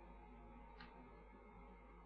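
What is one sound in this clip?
Metal tweezers tap lightly on a circuit board.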